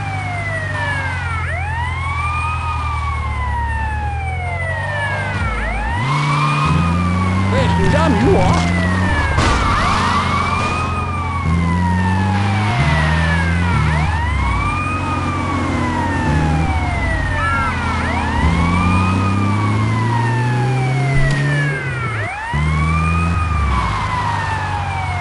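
A siren wails on an armoured police van.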